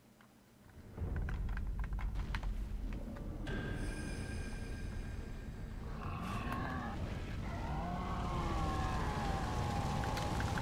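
Flames roar and crackle steadily.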